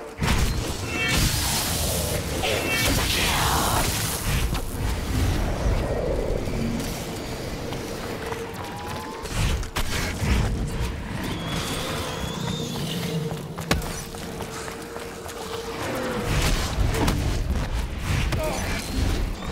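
A magic staff fires with loud blasts.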